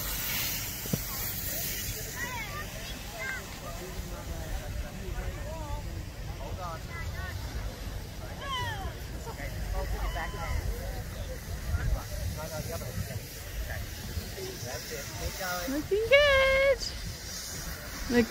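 A snowboard slides and scrapes over snow.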